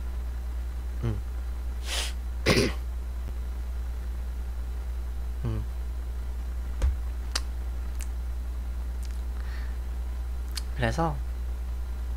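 A young man laughs softly, close to a microphone.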